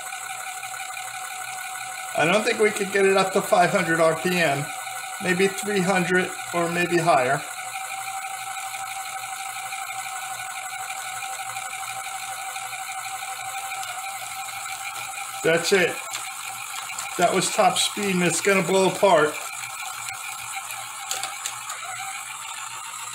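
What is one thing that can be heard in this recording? A small spinning motor whirs steadily.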